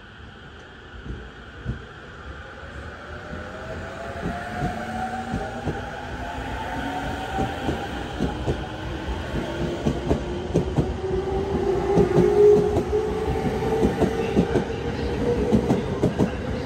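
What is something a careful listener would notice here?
Train wheels clatter rhythmically over rail joints, growing louder and faster.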